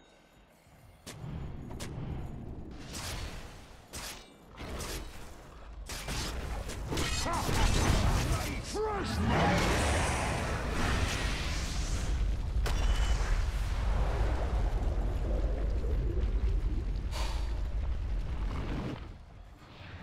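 Game spells clash and crackle in a fight.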